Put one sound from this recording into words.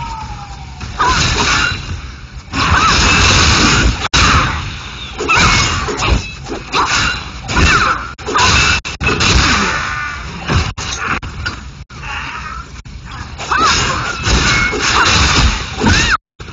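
Sword blows clash and slash in quick bursts.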